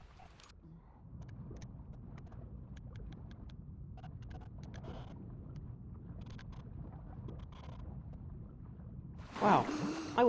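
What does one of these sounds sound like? Water rumbles low and muffled as a swimmer moves underwater.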